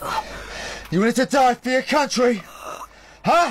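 A grown man shouts angrily up close.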